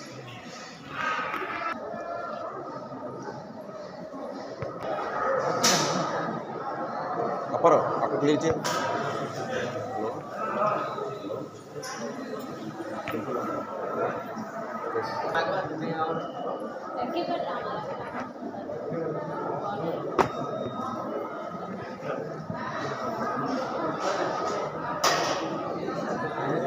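A crowd of people murmurs and chatters nearby.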